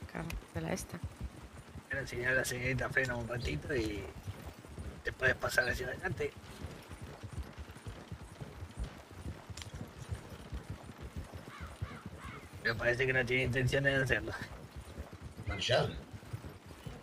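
Horse hooves clop steadily on a dirt track.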